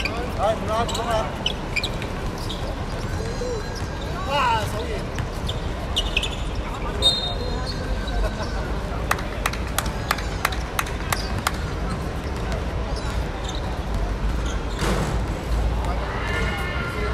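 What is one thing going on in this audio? Young men call out to each other across an outdoor court.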